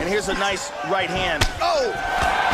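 A sharp kick lands with a thud.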